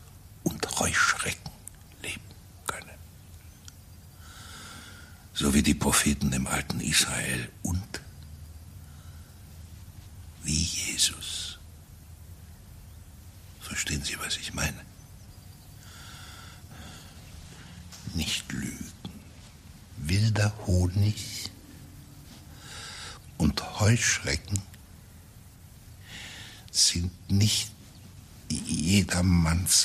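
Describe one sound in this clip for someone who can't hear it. An elderly man speaks in short, agitated bursts close by.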